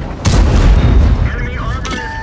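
A tank cannon fires with a heavy booming blast.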